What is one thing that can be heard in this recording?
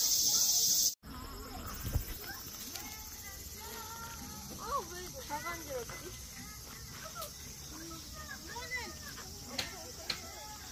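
Children talk and call out faintly outdoors.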